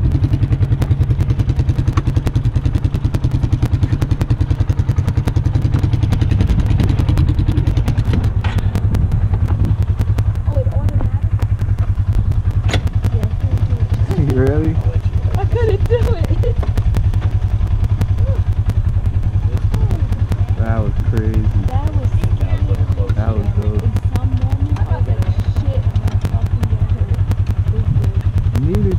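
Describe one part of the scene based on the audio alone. An off-road vehicle's engine idles with a steady low rumble close by.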